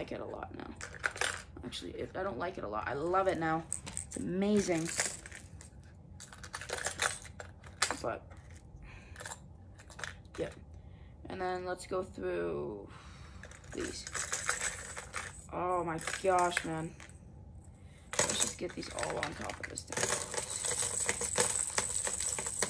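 Small objects rustle and click in hands.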